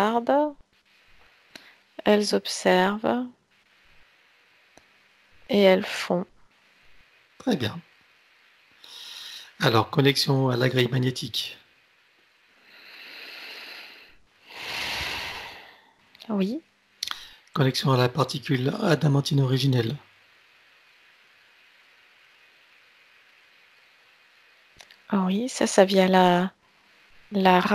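A man speaks calmly over an online call, close to a headset microphone.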